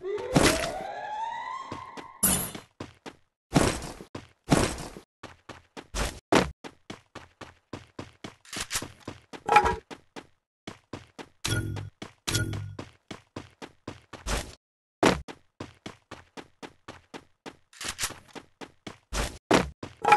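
Footsteps run quickly and steadily across the ground.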